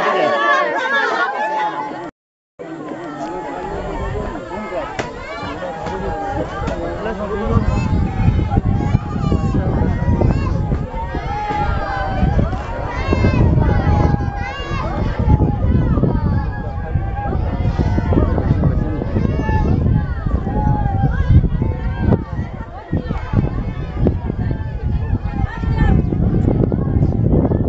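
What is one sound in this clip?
A crowd of men talk and murmur together nearby outdoors.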